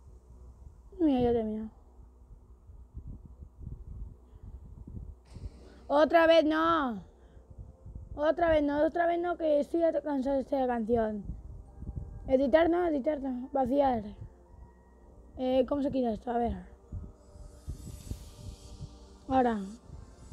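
A boy talks with animation, close to a microphone.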